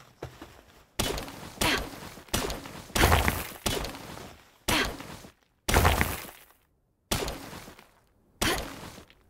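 A pickaxe strikes rock with sharp cracks, again and again.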